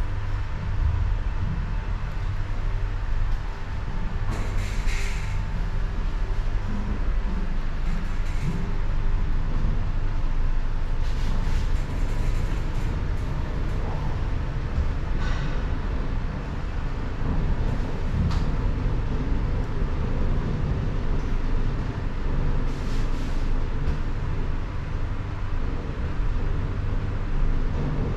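A lift car hums and rumbles low and steadily as it moves.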